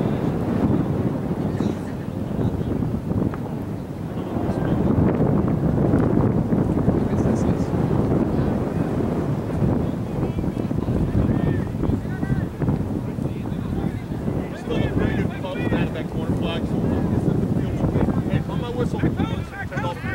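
Wind blows steadily across an open field outdoors.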